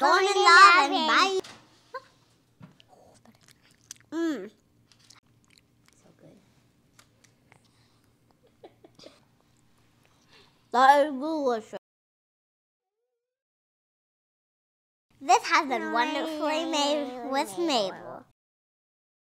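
A young girl speaks brightly, close to a microphone.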